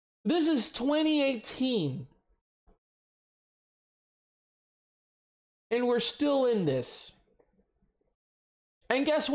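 A man talks with animation close to a microphone, in short bursts with pauses.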